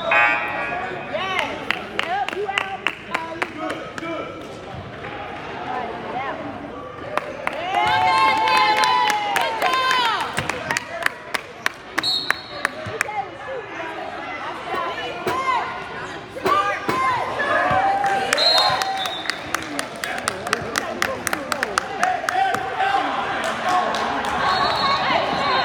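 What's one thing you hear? A basketball bounces with echoing thumps in a large hall.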